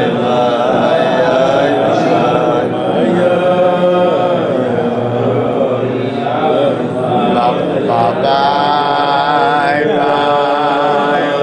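An elderly man sings a slow, wavering melody close by.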